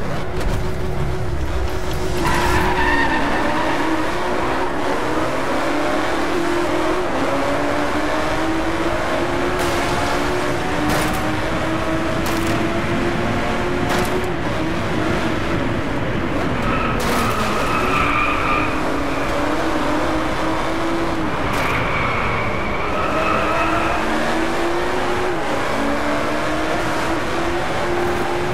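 A sports car engine accelerates up through the gears.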